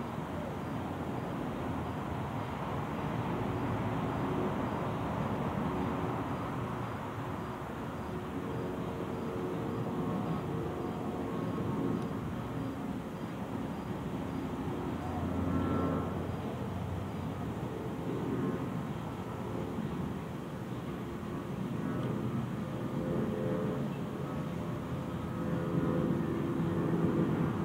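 A young child babbles and calls out at a distance.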